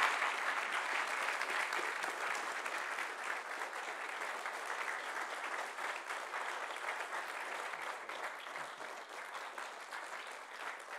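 An audience applauds in a large echoing hall, slowly fading.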